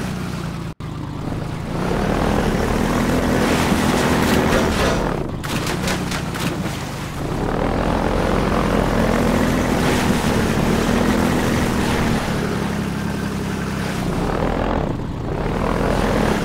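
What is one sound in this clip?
An airboat engine roars steadily at high speed.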